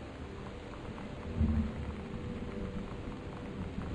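A paper postcard rustles as it is picked up and turned over.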